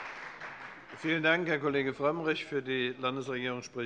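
A man speaks calmly over a microphone.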